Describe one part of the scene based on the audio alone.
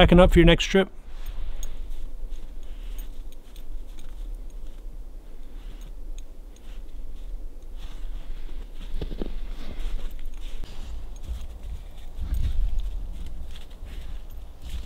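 A dog's paws crunch softly through snow.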